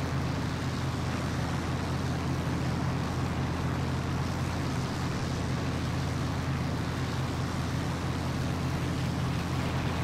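Several propeller engines drone steadily and loudly.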